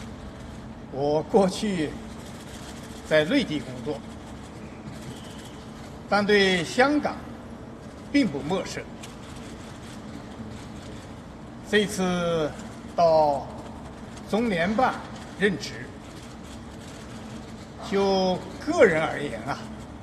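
A middle-aged man speaks calmly into microphones, with pauses between phrases.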